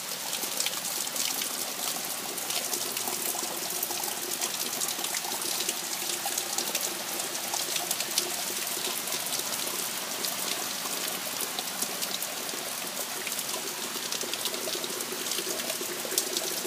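Raindrops patter and splash on leaves and puddles.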